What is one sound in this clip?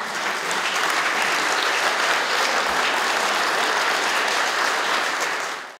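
A large crowd applauds in an echoing hall.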